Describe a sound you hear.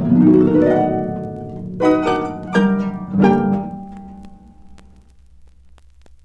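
A harp plays a few plucked notes that ring out and fade.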